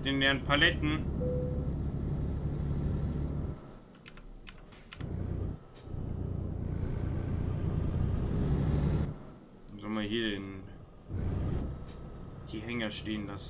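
A truck engine rumbles low and steady, dropping away at moments.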